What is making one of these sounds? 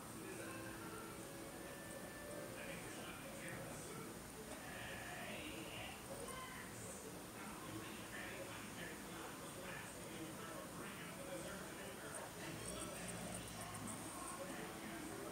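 A young woman talks calmly, close by.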